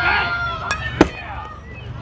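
A metal bat cracks against a ball.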